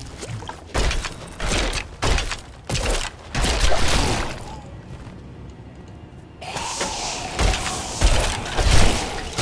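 Weapons strike and slash in rapid bursts of combat.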